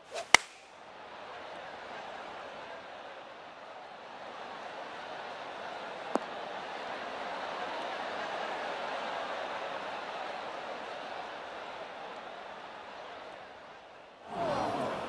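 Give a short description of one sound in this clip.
A crowd cheers and applauds, swelling and then slowly fading.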